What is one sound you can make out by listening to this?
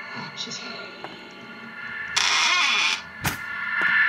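A door swings shut with a soft thud.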